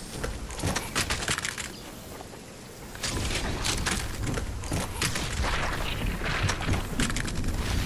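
Footsteps run across grass.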